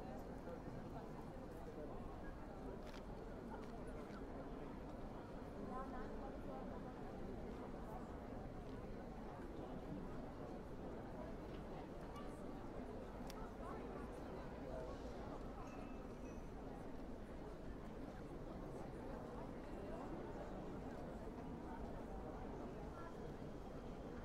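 A crowd of people murmurs and chatters outdoors in a busy open square.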